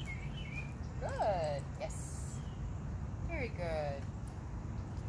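A dog whines in short high yelps.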